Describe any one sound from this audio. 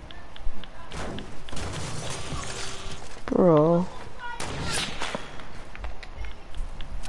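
Wooden walls slam into place with sharp thuds.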